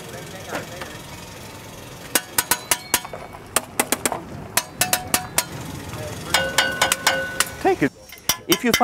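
Metal parts clank and knock sharply.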